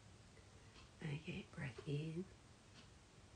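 A woman speaks calmly and softly close by.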